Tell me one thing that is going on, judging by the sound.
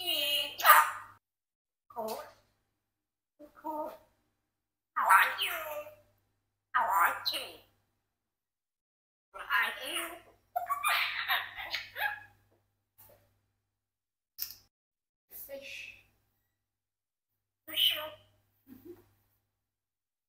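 A parrot talks in short bursts, close by.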